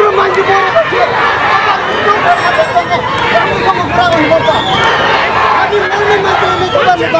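A crowd of men and women shout and clamour outdoors.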